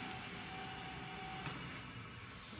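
A wood lathe motor whirs.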